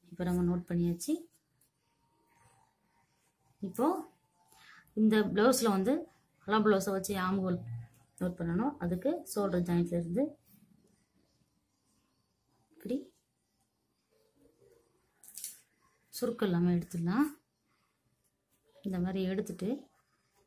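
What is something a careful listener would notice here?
Cloth rustles softly as it is smoothed and folded.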